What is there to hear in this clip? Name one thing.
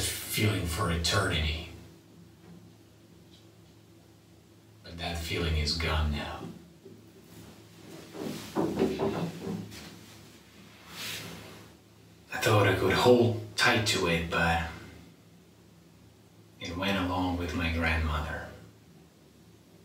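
A young man speaks calmly in short bursts, close by in a small echoing room.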